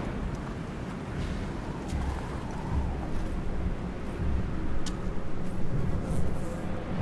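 Soft footsteps shuffle over dirt and stones.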